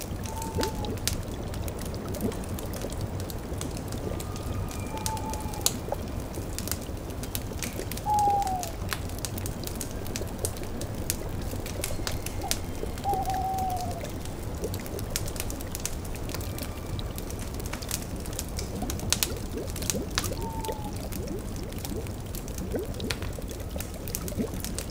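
A fire crackles and pops beneath a cauldron.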